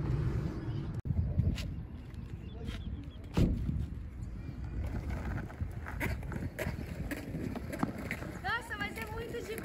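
Skateboard wheels rumble over rough asphalt.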